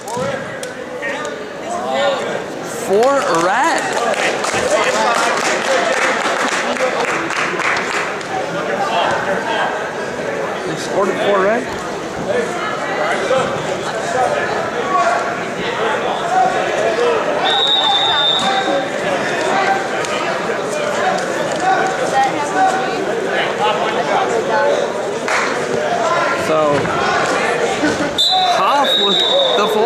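A crowd of people chatters throughout a large echoing gym.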